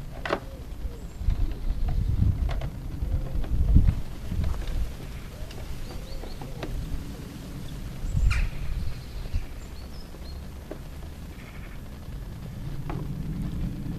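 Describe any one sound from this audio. A screwdriver scrapes and clicks against plastic panels.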